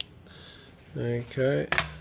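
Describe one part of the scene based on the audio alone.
Calculator buttons click under a finger.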